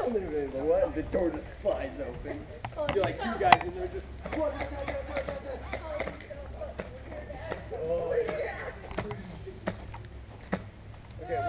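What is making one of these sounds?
Airsoft guns fire in sharp snapping shots.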